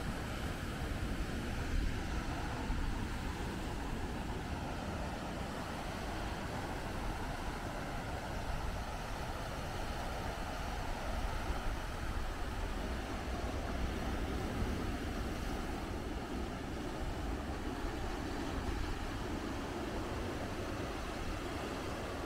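Waves crash and wash over a pebble beach nearby.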